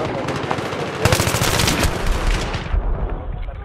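An assault rifle fires a burst of shots.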